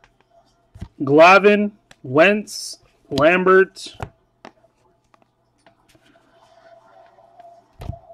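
Trading cards rustle and slide softly as hands flip through them.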